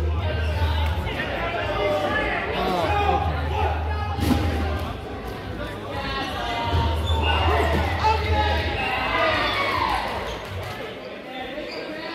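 Rubber balls bounce and thud on a wooden floor.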